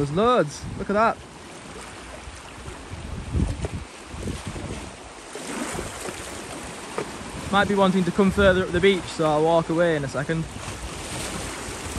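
Waves wash and splash against rocks at the shore.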